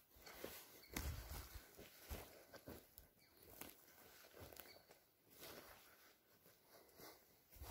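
Footsteps thud and rustle on soft, mossy ground outdoors.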